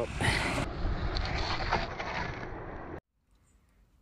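A shovel scrapes and digs into gravelly soil.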